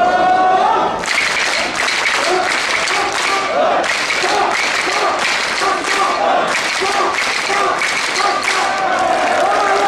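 Hands clap in rhythm among a crowd.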